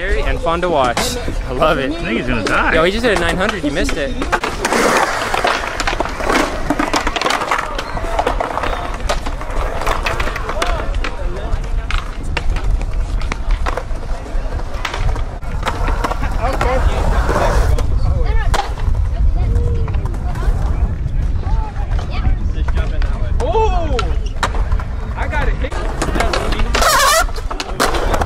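A skateboard clatters and snaps as it lands tricks.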